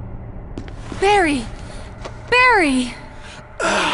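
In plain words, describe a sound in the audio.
A young woman shouts a name urgently, twice.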